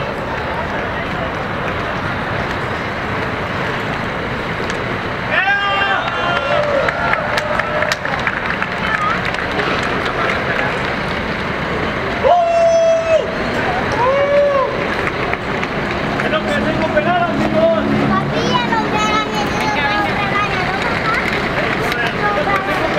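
Street traffic rumbles steadily outdoors.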